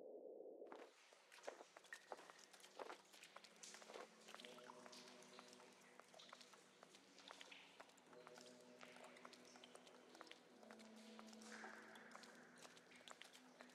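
Footsteps scuff on a stone floor in an echoing chamber.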